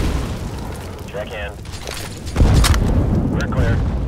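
A grenade explodes with a heavy boom.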